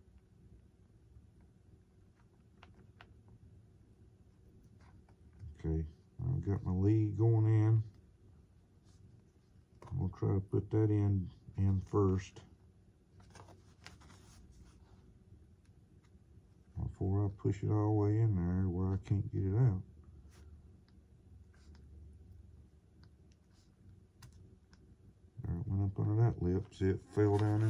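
Small parts click softly as hands fit them together.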